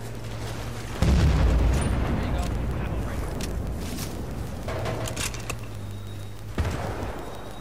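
A bolt-action sniper rifle fires a sharp shot.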